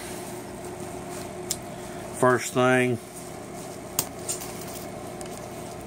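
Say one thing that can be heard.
Nylon straps rustle as a hand handles them.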